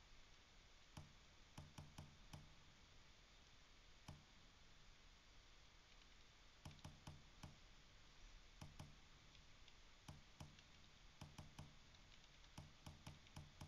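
Soft menu clicks and ticks sound as selections move.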